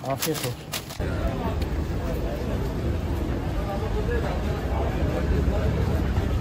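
A crowd of people chatters outdoors in a busy street.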